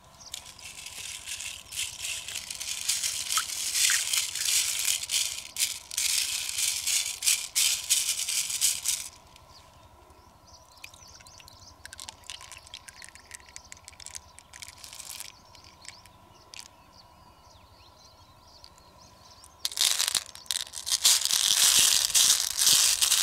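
Small beads rattle and clatter against a hard shell.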